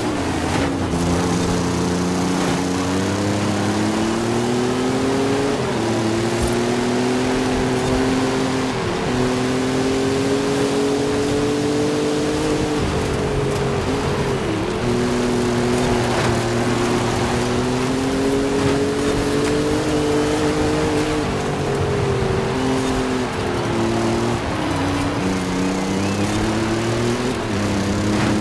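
A car engine roars loudly, rising in pitch as it speeds up and dropping sharply with each gear change.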